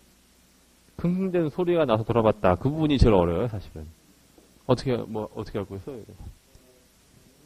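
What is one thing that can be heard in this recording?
A man speaks clearly and slowly into a microphone, as if reading aloud.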